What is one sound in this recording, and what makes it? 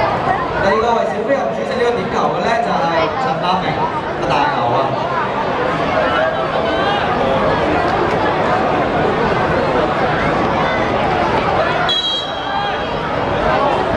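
A crowd of young men and women chatters and calls out outdoors.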